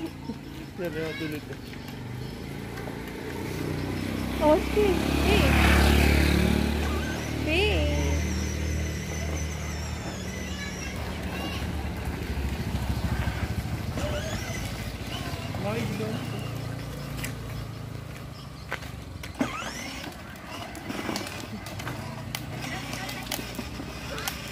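Small plastic wheels rumble over rough concrete.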